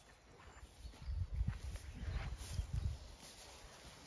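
A small dog scampers through long grass.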